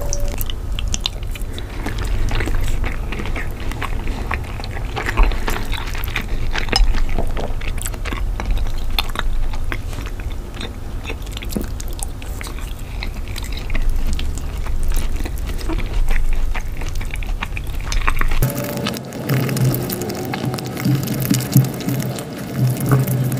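A man chews food wetly and smacks his lips close up.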